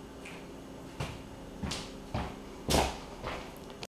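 Feet thud on a wooden floor.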